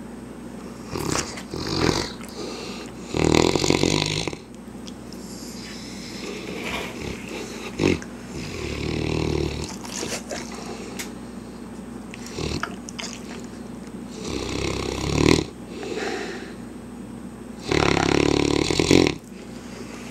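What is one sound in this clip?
A dog snores loudly in bursts, close by.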